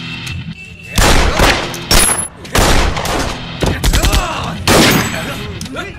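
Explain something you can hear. Gunshots bang loudly and echo.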